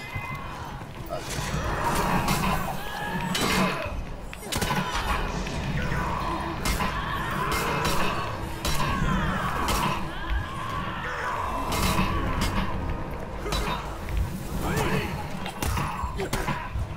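Swords clash and strike in a fierce fight.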